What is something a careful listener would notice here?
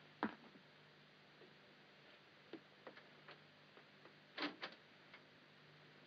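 A door latch clicks and rattles close by.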